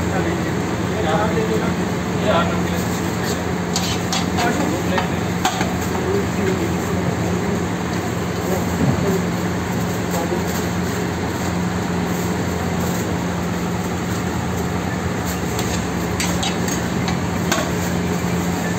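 Metal utensils clink and scrape against pans.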